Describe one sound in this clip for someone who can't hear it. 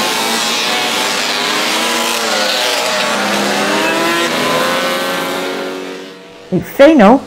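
Racing motorcycles roar loudly as they pull away.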